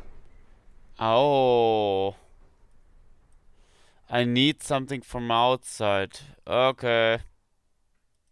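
A young man speaks loudly and animatedly into a close microphone.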